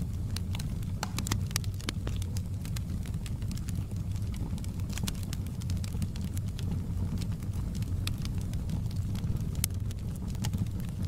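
Flames roar with a low steady rumble.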